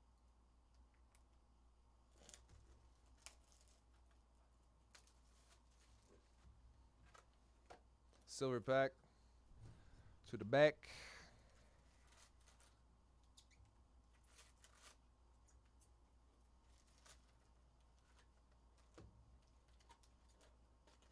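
Cards and wrappers rustle and tick as they are handled.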